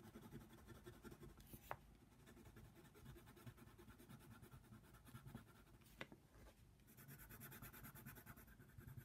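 A coloured pencil scratches softly across paper in quick strokes.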